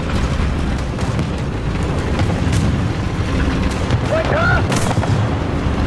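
Tank tracks clatter over sand.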